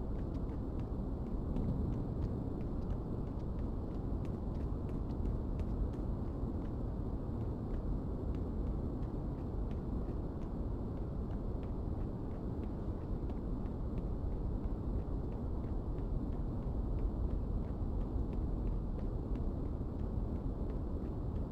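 Footsteps crunch on a concrete rooftop.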